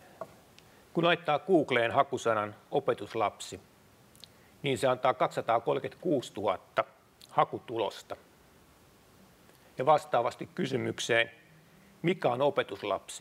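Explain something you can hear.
A middle-aged man speaks steadily into a microphone, with pauses.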